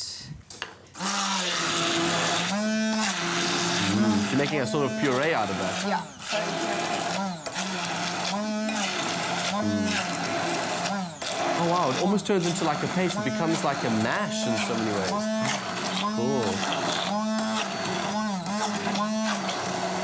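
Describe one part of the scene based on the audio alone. A hand blender whirs steadily.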